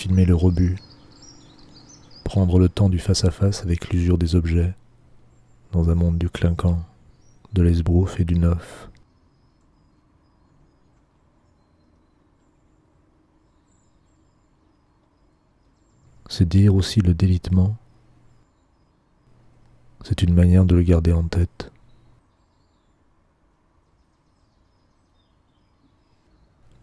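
Rain patters softly on a window.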